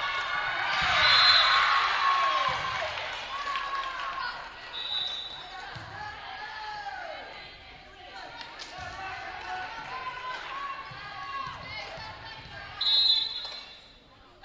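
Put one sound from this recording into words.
Sneakers squeak sharply on the gym floor.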